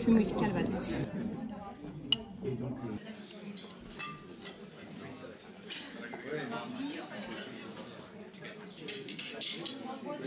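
A knife and fork scrape and clink against a ceramic plate.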